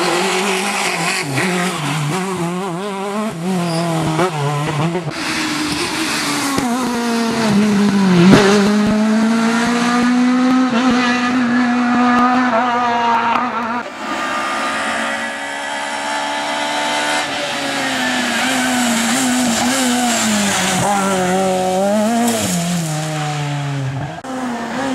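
A rally car engine revs hard, its pitch rising and falling as gears change.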